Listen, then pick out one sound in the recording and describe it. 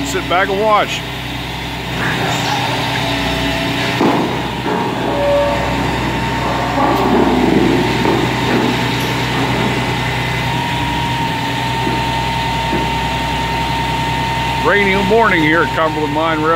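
Hydraulic machinery whines as loader arms move.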